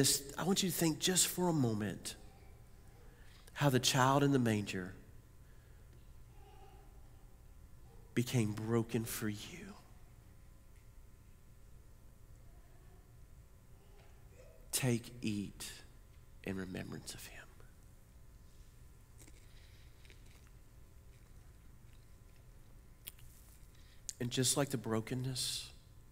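A middle-aged man speaks slowly and calmly through a headset microphone, with long pauses, in a room with some echo.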